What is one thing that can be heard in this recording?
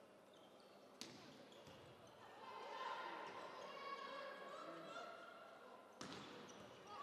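A volleyball is struck with a sharp smack.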